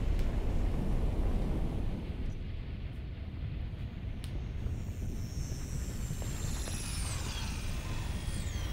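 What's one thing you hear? Fire rumbles and roars in a low, steady drone.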